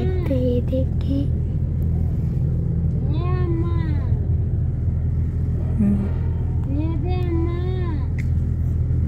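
A young girl talks in a sing-song voice close by.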